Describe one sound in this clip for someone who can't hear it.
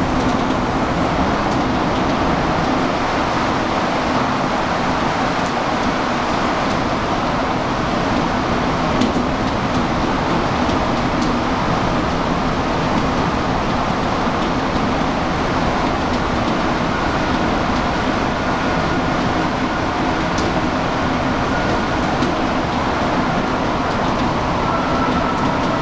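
Metal rattles and clicks now and then as a subway car sways.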